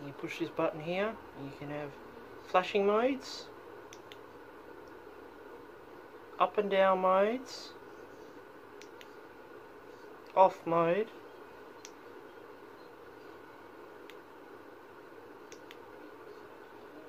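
Small clicks of a flashlight button sound close by.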